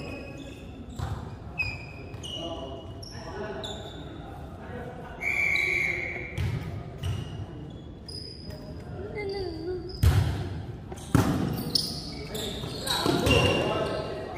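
A volleyball is struck with hard slaps.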